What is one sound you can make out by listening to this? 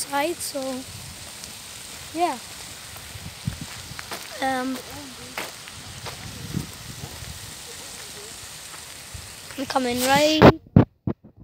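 A young boy speaks in short bursts, close by.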